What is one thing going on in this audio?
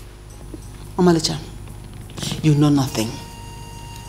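A woman speaks firmly, close by.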